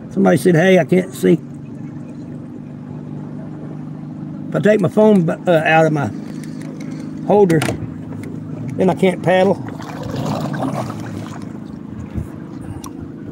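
Water laps gently against the hull of a small boat.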